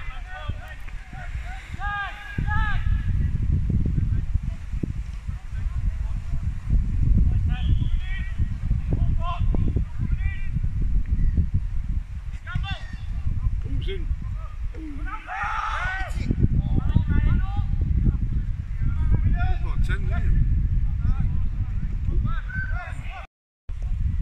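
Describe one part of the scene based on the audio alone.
Children shout and call out across a playing field.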